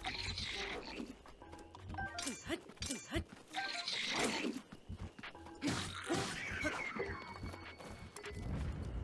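Weapons clash and thud in a video game fight.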